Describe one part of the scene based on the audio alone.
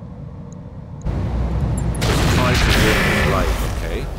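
A laser weapon fires with a sharp zap.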